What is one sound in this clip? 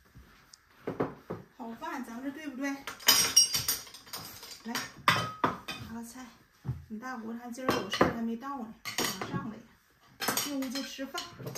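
Plates clink on a table.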